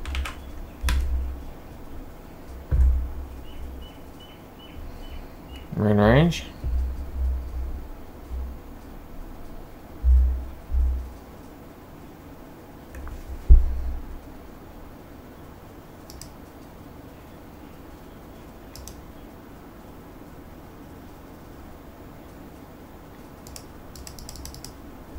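A jet engine hums steadily from inside a cockpit.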